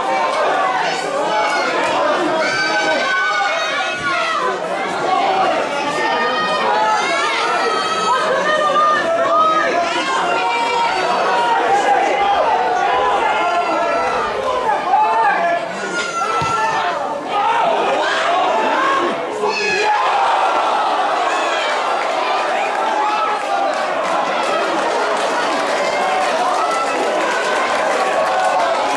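Young men shout and call to each other outdoors on an open field.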